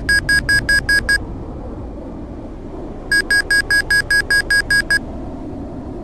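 A cockpit warning tone beeps rapidly in short bursts.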